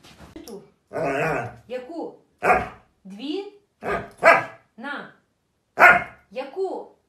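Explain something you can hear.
A young woman talks to a dog in a high, playful voice close by.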